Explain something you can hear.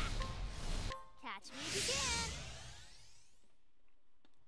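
A fiery magic blast whooshes and rings out.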